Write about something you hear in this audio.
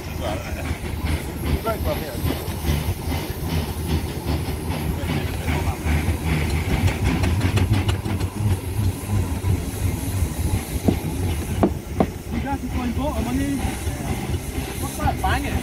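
A steam engine chuffs steadily close by.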